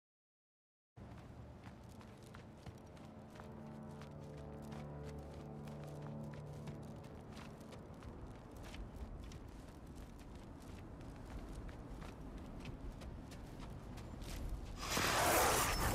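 Footsteps crunch over rough ground and snow.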